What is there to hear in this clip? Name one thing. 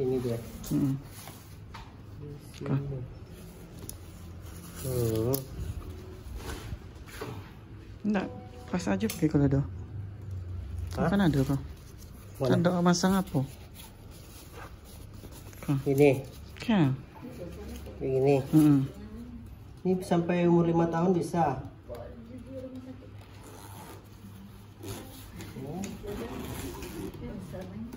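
Fabric rustles as it is handled.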